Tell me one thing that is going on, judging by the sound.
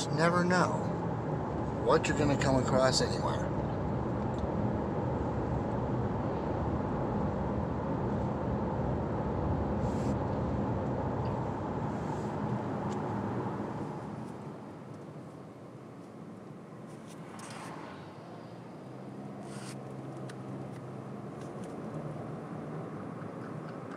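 A car drives along a road with a steady rumble of tyres and engine.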